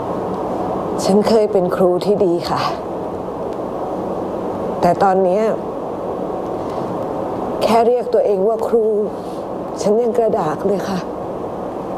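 Another middle-aged woman answers in a firm, animated voice.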